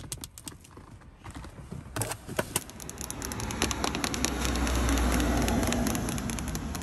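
Long fingernails tap and click on a hard plastic surface.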